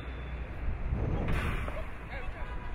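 A hockey stick strikes a ball with a sharp crack.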